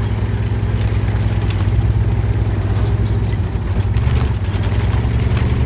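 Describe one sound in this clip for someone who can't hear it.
A tank engine rumbles deeply and steadily.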